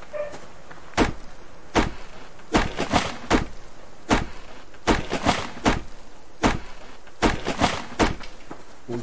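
An axe chops into a tree trunk with sharp, repeated knocks.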